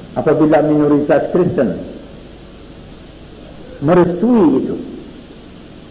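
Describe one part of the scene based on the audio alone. A man chants in a drawn-out, wavering voice, heard through an old, hissy recording.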